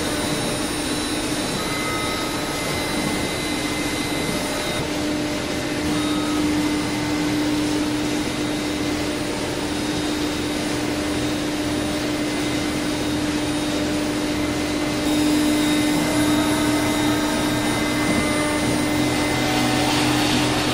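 A machine spindle whines steadily as it cuts.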